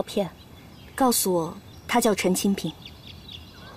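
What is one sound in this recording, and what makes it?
A young woman speaks earnestly up close.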